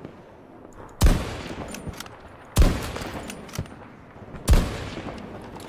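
A sniper rifle fires loud sharp shots that echo away.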